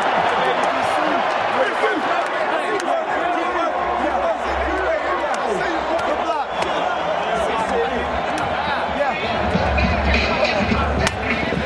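Men talk and shout excitedly close by.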